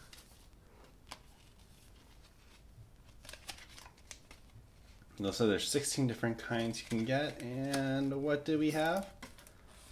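A paper card rustles as hands handle it.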